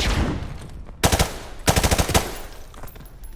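A rifle fires loud shots indoors.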